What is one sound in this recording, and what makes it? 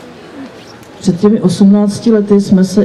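An elderly woman speaks into a microphone over a loudspeaker.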